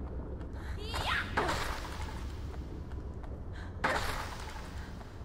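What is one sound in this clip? A weapon swings and smashes into a wooden crate.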